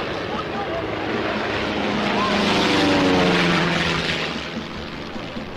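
A small propeller plane roars low overhead and fades away.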